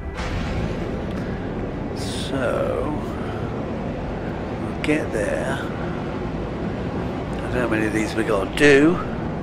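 A spaceship engine hums with a low, steady rumble.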